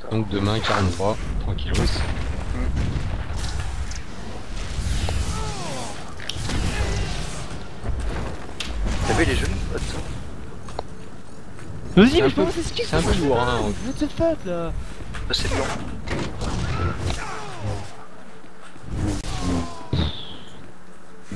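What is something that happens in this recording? Lightsabers hum and clash in a fight.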